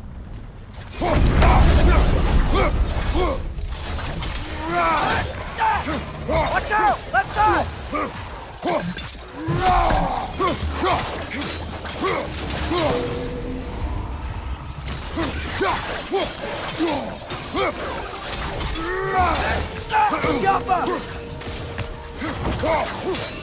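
Heavy blows strike and weapons clash in a fierce fight.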